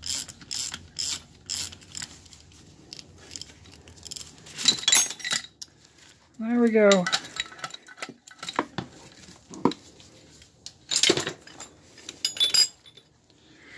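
Metal tools clank and knock against metal parts close by.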